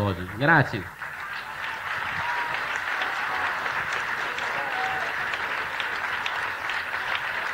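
A large crowd applauds outdoors.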